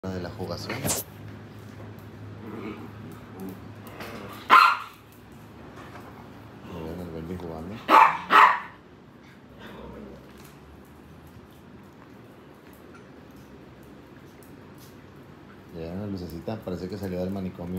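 Small dogs growl and grumble as they play.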